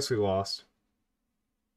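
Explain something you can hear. A young man speaks briefly and with animation into a close microphone.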